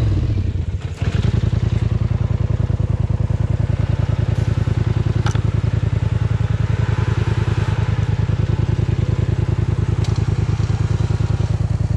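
A quad bike engine idles with a steady, rapid chugging.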